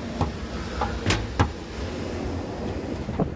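A metal door rattles as it is pushed open.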